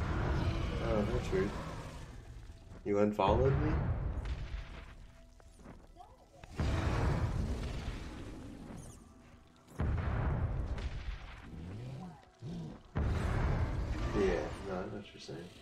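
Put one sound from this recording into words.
Game spells burst and crackle in bursts.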